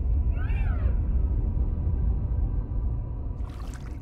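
Low wind rushes steadily, then eases.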